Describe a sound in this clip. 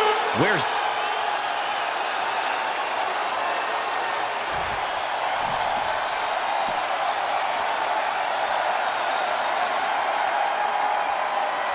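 A large arena crowd cheers and roars steadily.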